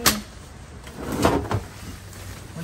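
Plastic wrapping rustles and crinkles as heavy furniture is moved.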